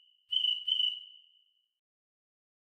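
A phone app plays two short, high cricket chirps.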